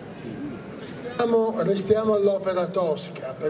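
A middle-aged man speaks through a microphone and loudspeakers.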